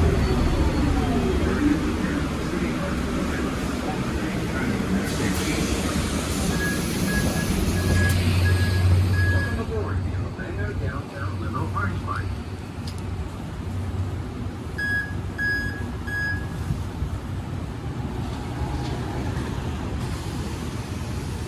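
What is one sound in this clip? A bus engine rumbles steadily nearby.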